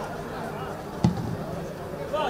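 A football thuds off a player's boot.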